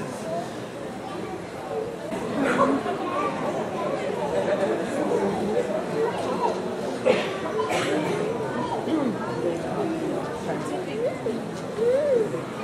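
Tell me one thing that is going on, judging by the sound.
Children chatter and murmur in a large echoing hall.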